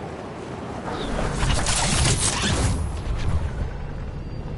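A glider snaps open with a loud whoosh.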